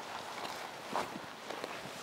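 Dry brush scrapes along gravelly ground.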